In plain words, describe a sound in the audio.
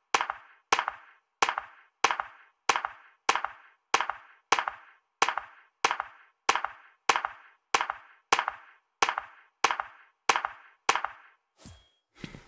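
Hands clap slowly in a steady rhythm.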